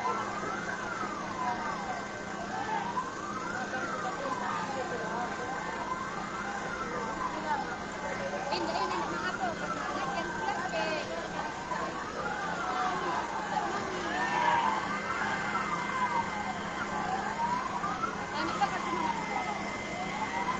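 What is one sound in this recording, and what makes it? A siren wails, rising and falling steadily.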